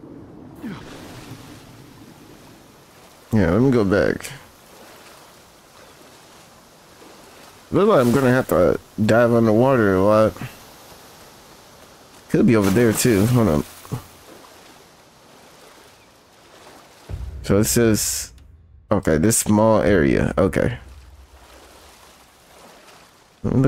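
Water splashes softly as a swimmer paddles through it.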